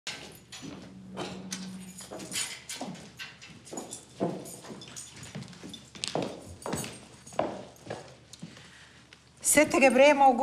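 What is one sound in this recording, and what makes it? Footsteps tap across a hard floor.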